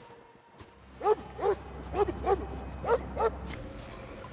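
A dog barks repeatedly.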